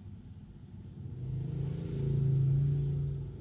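A motorbike rides past.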